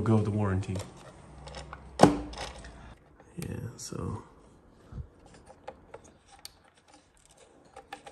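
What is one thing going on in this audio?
Plastic parts click and rattle as a wire connector is handled.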